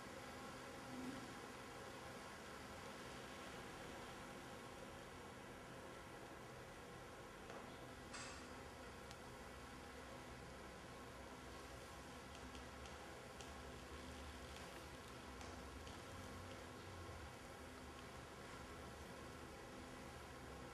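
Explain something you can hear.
Layers of a skirt rustle softly against the floor.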